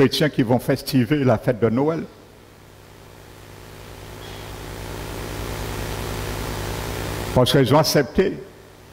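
A middle-aged man speaks calmly through a headset microphone, with pauses.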